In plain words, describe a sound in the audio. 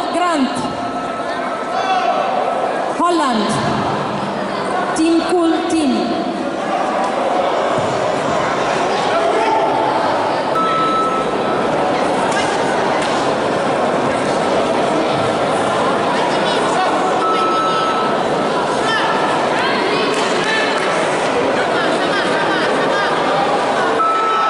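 A large crowd chatters and shouts, echoing in a big hall.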